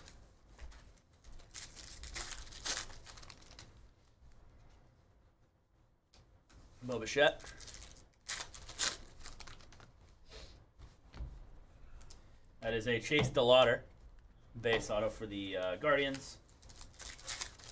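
Foil card wrappers crinkle and tear.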